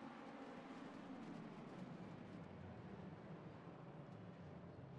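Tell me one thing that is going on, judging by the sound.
Racing car engines drop in pitch as the cars brake into a bend.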